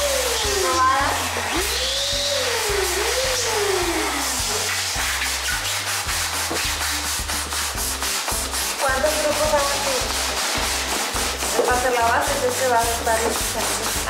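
A hand pump pushes air in quick, steady strokes.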